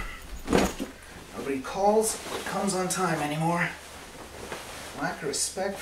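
Cloth rustles as a jacket is put on.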